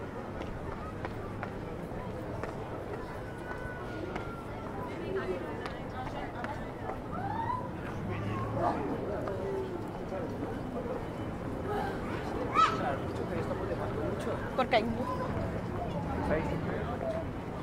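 Footsteps patter on paving stones.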